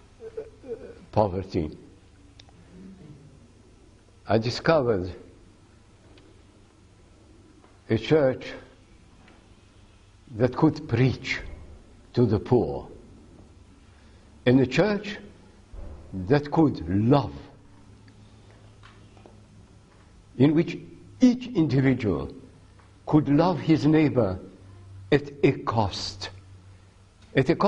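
An elderly man speaks slowly and deliberately into a microphone, with long pauses between phrases.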